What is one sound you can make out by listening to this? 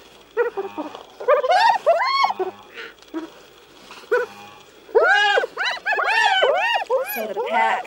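Hyenas whoop and squeal in high, rising and falling calls.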